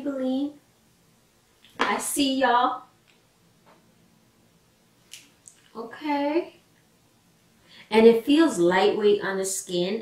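A young woman talks calmly and close to a microphone, in short bursts.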